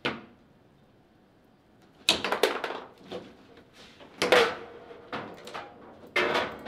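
A table football ball knocks sharply against the players and the table walls.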